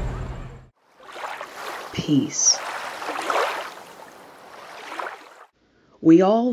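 Waves wash softly onto a pebble shore.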